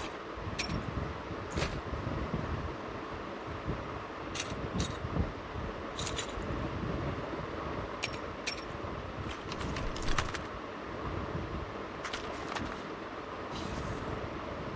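Short clicks sound as items are picked up.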